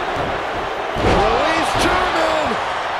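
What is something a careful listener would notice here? A heavy body thuds onto a wrestling mat.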